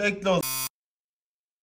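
A young man talks through an online call.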